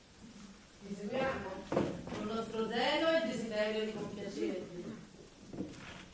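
A woman speaks with feeling on a stage, heard from a distance in a large room.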